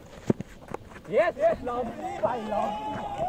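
Young men shout on an open field.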